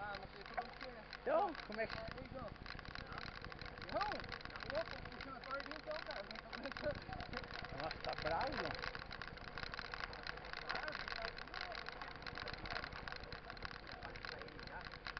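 Bicycle tyres crunch and rattle over a gravel road.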